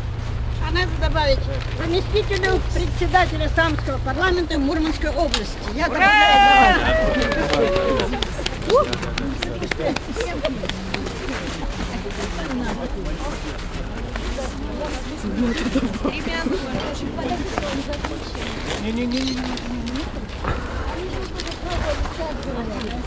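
A crowd of men and women talks and murmurs nearby outdoors.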